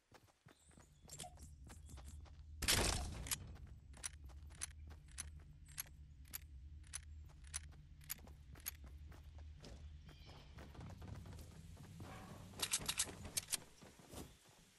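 Footsteps patter quickly across grass and wooden steps.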